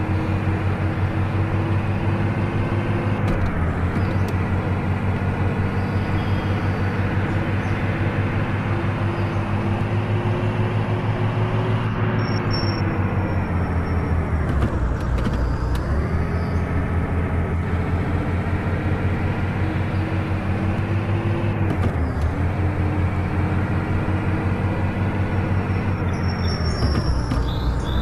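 A bus engine hums steadily, dipping in pitch as it slows and rising again as it speeds up.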